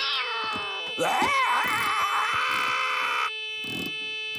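A cartoonish male voice shouts angrily.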